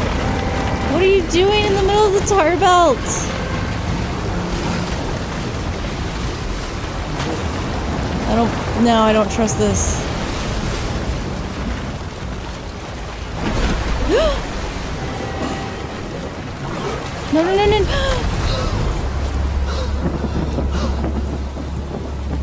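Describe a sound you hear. Waves slosh and churn on rough open water.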